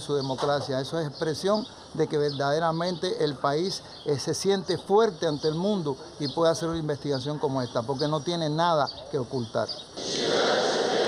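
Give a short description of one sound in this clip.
An elderly man speaks calmly, heard through a loudspeaker.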